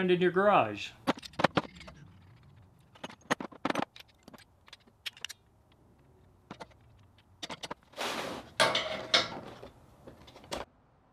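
Metal tool parts click and clatter.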